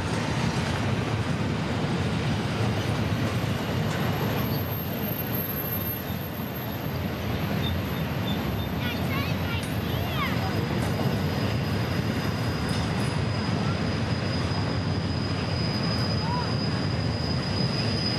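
A freight train rumbles steadily past at a distance, its diesel engines droning low.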